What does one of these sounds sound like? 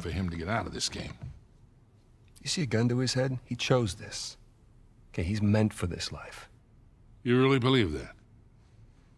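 An older man speaks calmly and quietly, close by.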